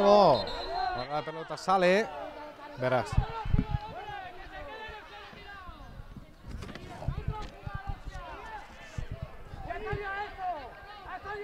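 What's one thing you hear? Young men shout to each other outdoors across a sports pitch.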